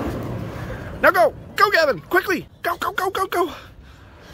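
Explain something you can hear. A young boy squeals and shouts excitedly nearby.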